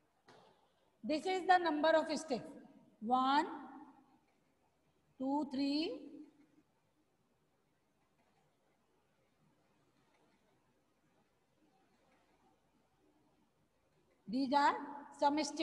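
A woman speaks clearly and calmly, close by, in short bursts.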